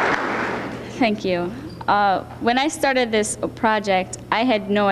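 A teenage girl speaks calmly into a microphone over a loudspeaker.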